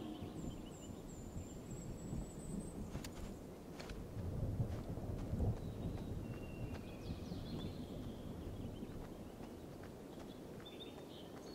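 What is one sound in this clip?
Leaves rustle as figures push through dense bushes.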